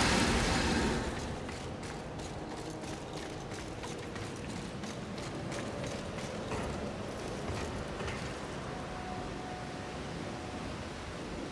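Quick footsteps run on hard ground and metal grating.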